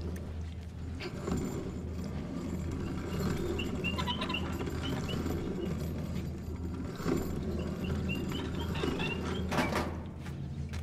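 A heavy cart rolls and rumbles over a hard floor.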